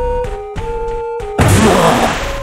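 Electronic video game beeps play a short melody.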